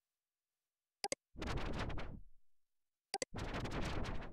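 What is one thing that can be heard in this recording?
A mouse clicks twice.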